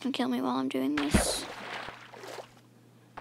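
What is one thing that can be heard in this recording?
Water splashes as something plunges in.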